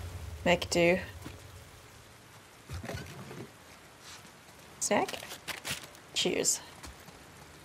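A young woman speaks briefly and calmly into a close microphone, in short bursts.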